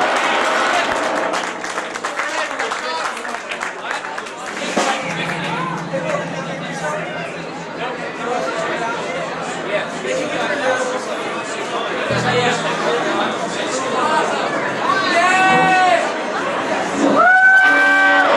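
A drummer plays a drum kit with cymbals.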